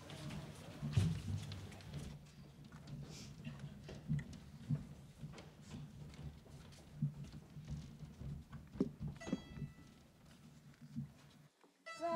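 Footsteps thud on a wooden stage in a large hall.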